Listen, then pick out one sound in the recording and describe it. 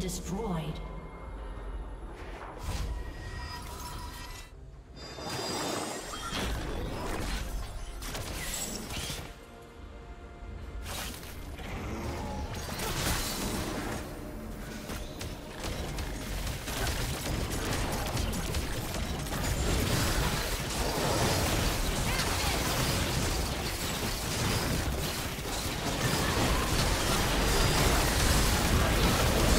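Game spell effects whoosh and crackle during a fight.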